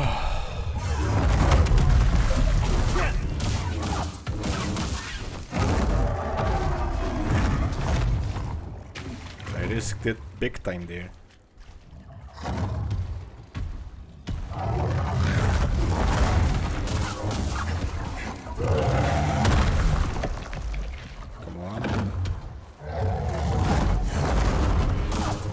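A large beast roars loudly.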